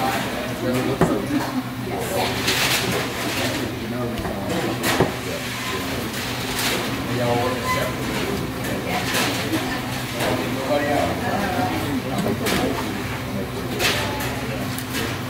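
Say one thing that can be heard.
A knife scrapes and taps on a wooden board.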